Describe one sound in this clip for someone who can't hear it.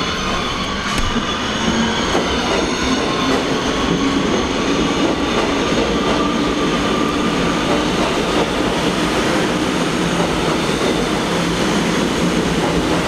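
Train wheels screech on the rails.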